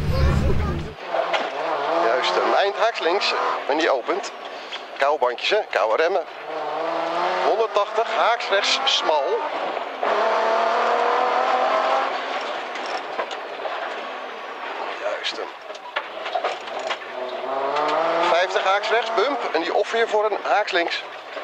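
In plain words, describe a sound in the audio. A race car engine revs hard and drops with each gear change, heard from inside the car.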